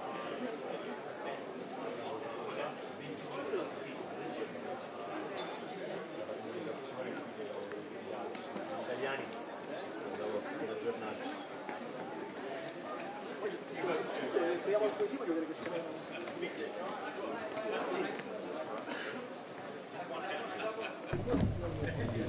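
A crowd of people chatters in a large, echoing hall.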